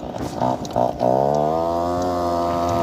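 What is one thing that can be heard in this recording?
A motorcycle engine hums and rises in pitch as it speeds up.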